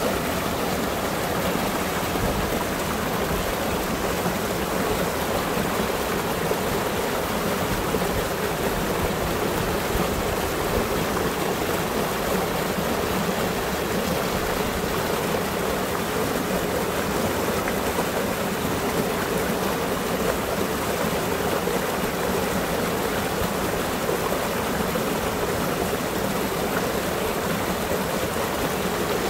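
A mountain stream rushes and splashes loudly over rocks close by.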